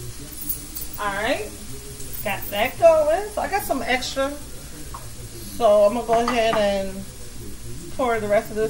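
A young woman talks casually close to the microphone.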